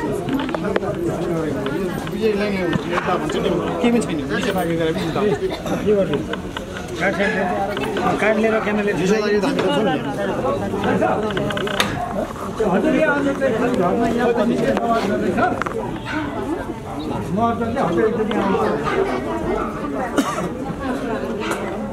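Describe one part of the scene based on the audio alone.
A crowd of men talk loudly over one another close by.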